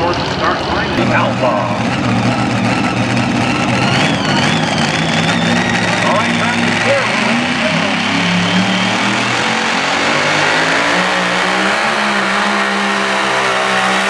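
A pulling tractor's engine rumbles loudly at idle.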